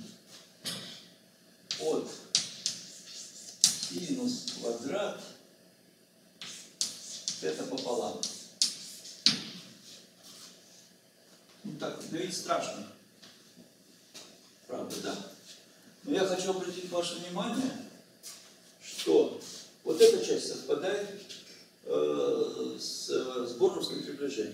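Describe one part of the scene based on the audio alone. An elderly man lectures calmly in an echoing room.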